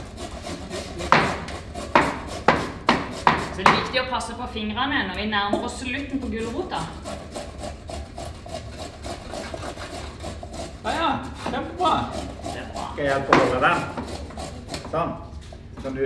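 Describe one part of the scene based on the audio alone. A grater scrapes against vegetables.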